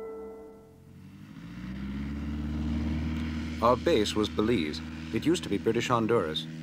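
A small propeller plane drones overhead, growing louder as it approaches.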